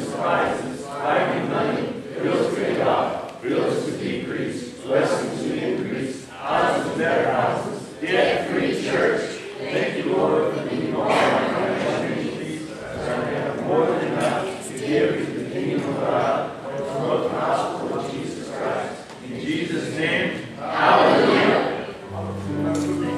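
A guitar plays along with the singing.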